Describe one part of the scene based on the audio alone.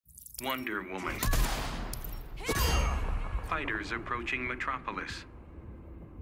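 Bullets strike metal armor with sharp ringing cracks.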